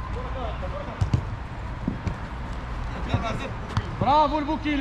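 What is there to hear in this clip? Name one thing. A football thumps off a foot.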